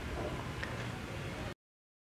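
Liquid pours into a pan.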